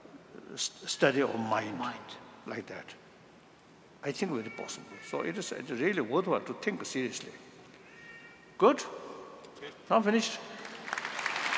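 An elderly man speaks calmly and slowly into a microphone, his voice carrying through a hall's loudspeakers.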